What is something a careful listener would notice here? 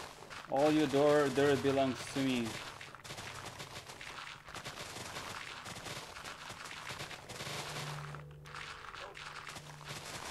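Blocks crunch as they are dug out.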